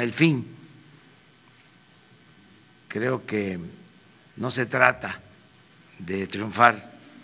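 An elderly man speaks calmly into a microphone, with short pauses.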